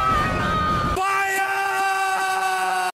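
A young man shouts.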